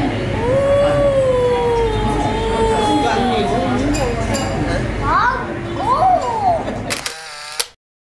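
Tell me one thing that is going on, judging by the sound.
A young boy whines and cries loudly up close.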